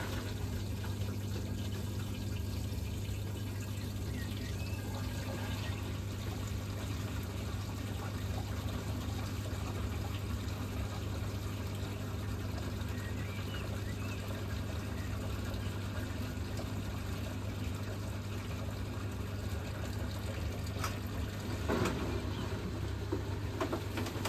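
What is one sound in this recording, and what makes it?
Water sloshes inside a washing machine drum.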